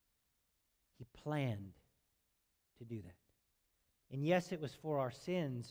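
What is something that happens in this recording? A middle-aged man speaks calmly through a microphone, with pauses between phrases.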